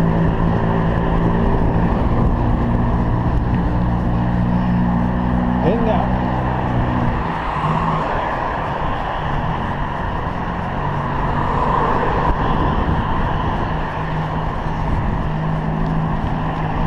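Wind buffets the microphone of a cyclist riding along an outdoor road.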